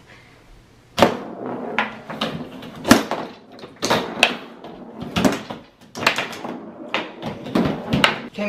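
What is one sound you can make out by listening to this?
A foosball ball knocks sharply against plastic players and the table walls.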